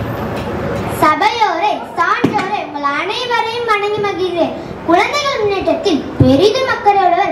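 A girl speaks with animation through a microphone and loudspeaker.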